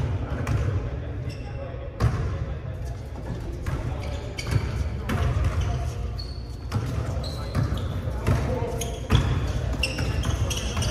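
Players call out to each other across the gym.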